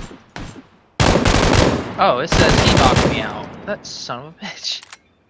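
Rifle shots crack in quick bursts, close by.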